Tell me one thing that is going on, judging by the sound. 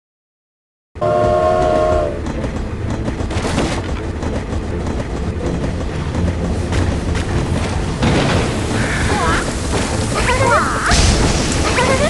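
A steam train chugs along steadily.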